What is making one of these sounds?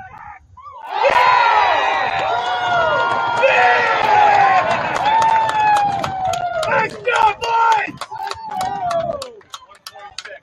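A crowd of young men cheers and yells loudly.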